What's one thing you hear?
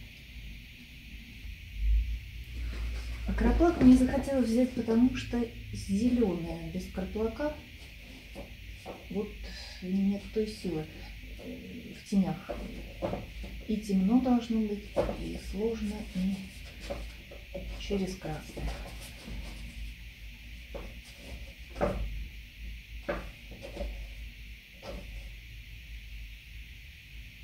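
A brush dabs and scrapes softly on canvas.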